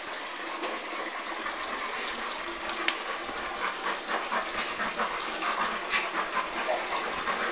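Puppies patter and scamper on a hard outdoor floor.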